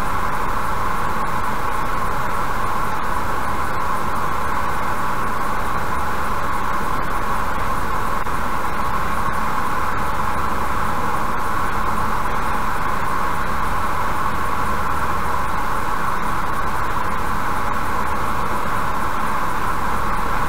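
A car drives steadily along a highway with a constant road roar.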